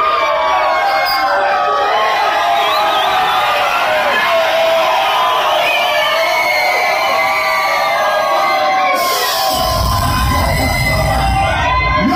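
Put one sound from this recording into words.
A crowd sings and cheers loudly in a noisy, echoing room.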